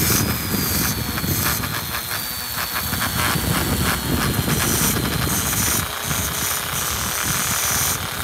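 A small rotary tool whines steadily at high speed.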